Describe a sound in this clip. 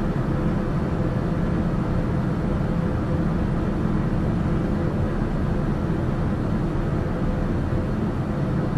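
A single-engine turboprop drones steadily in cruise, heard from inside the cockpit.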